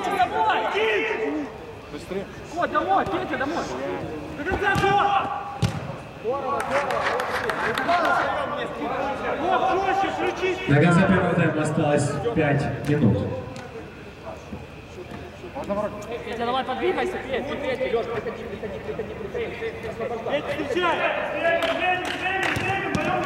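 Young men shout to one another across a large echoing dome.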